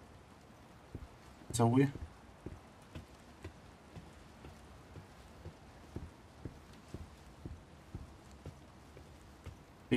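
Footsteps tap across a wooden floor.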